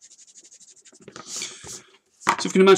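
A hand slides across paper with a rustle.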